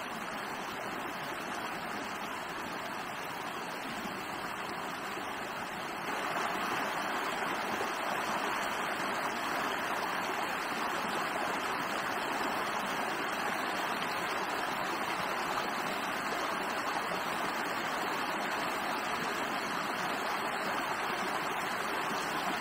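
A shallow stream rushes and burbles over rocks nearby.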